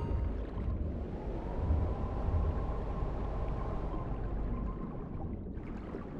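A vehicle engine hums steadily underwater.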